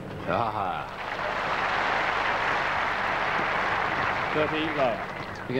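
A large crowd applauds steadily.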